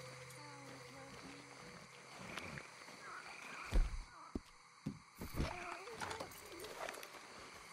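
Footsteps squelch through wet grass.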